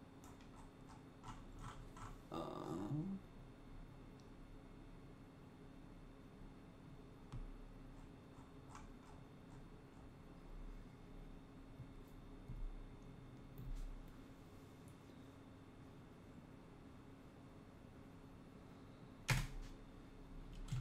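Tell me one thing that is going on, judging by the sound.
Computer keys click as a man types.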